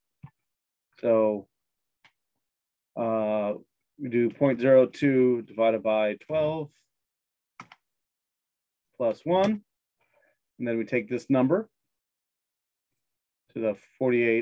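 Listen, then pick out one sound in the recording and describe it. A man explains calmly into a microphone, in short bursts with pauses.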